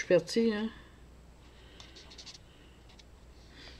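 A marker scratches softly on paper.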